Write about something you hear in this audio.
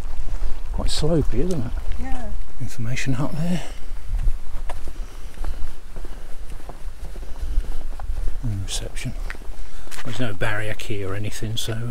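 An older man talks calmly, close to the microphone.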